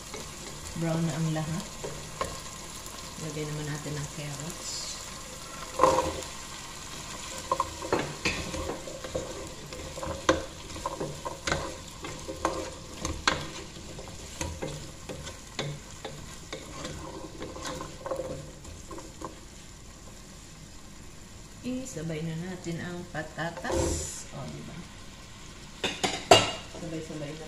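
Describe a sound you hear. A wooden spoon scrapes and knocks against a metal pot.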